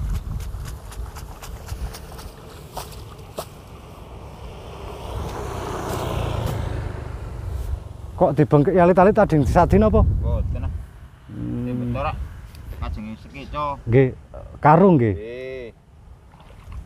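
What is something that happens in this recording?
Water splashes softly as rice seedlings are pulled from wet mud.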